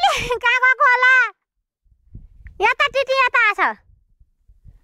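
A toddler calls out loudly in a high, drawn-out voice close by.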